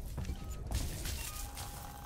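Electric sparks crackle and fizz nearby.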